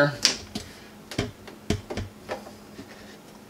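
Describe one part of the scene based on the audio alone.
Plastic pipe fittings click and knock under a hand.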